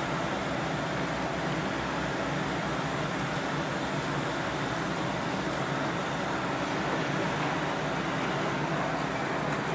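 A bicycle rolls past on the road.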